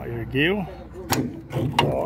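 A metal latch clicks against a truck's side.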